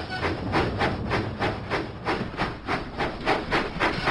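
A steam engine chuffs along the track.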